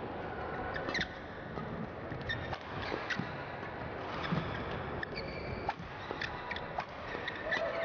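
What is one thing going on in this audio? A shuttlecock is struck sharply back and forth with rackets.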